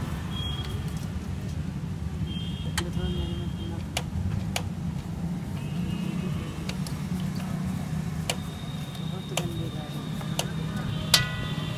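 Metal engine parts clink and tap as hands work on them.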